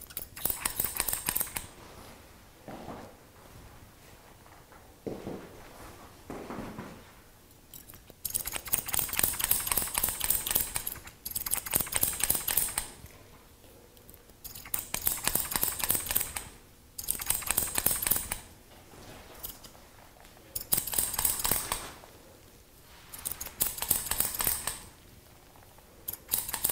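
Scissors snip rapidly through hair, close by.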